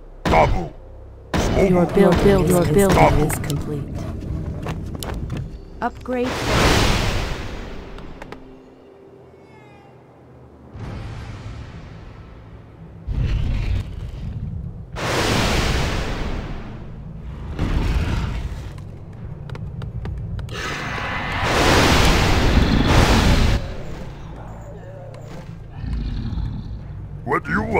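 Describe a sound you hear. Magic spells crackle and whoosh in bursts during a fight.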